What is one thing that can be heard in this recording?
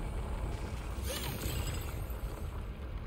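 A gun fires a quick burst of shots.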